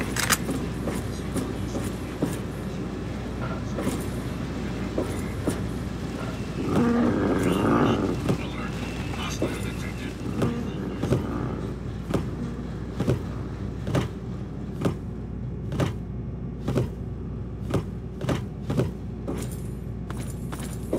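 Footsteps clang steadily on a metal floor.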